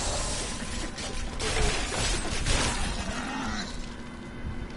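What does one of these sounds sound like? Weapons clash and bodies are hit in a fast fight.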